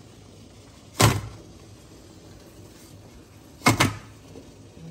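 A glass pot lid clinks against the pot.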